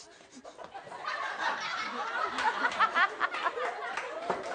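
A group of people laugh and cheer loudly.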